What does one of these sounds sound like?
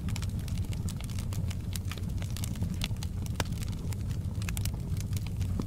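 Burning logs crackle and pop in a fire.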